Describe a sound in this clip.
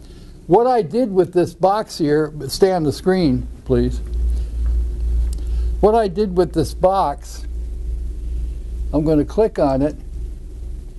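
An elderly man speaks calmly and explains nearby, with pauses.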